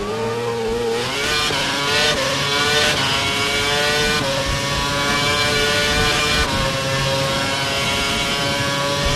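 A racing car engine roars and echoes loudly through a tunnel.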